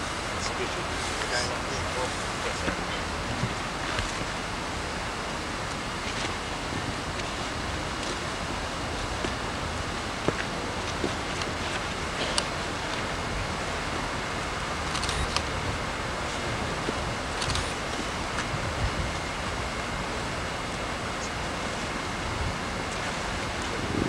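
Boots scuff and step on dirt as soldiers move and turn.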